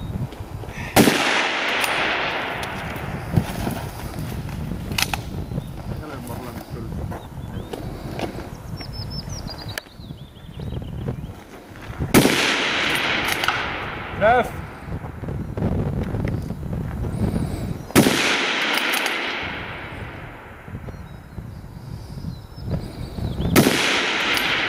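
A rifle fires loud single shots that echo and roll away outdoors.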